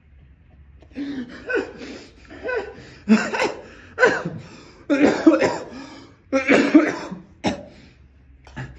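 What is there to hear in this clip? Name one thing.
A young man laughs heartily close by.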